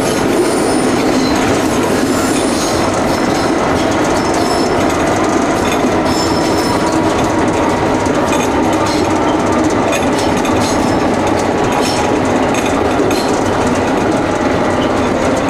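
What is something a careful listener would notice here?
Wheels clack and squeal on the track.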